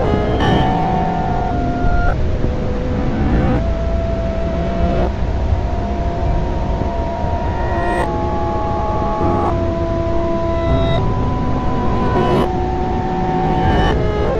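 Upbeat electronic music plays with a steady beat.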